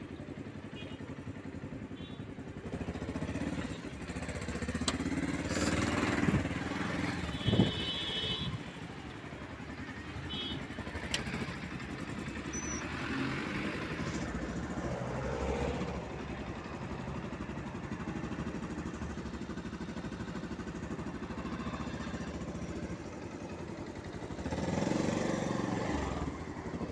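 A motorcycle engine idles and putters close by.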